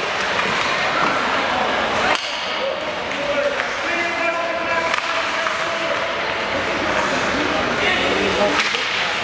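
Ice skates scrape across an ice rink in a large echoing arena.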